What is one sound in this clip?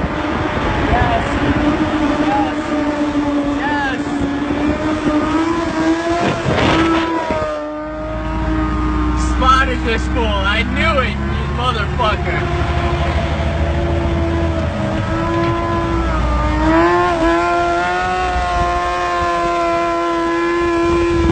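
A motorcycle engine whines loudly at high revs.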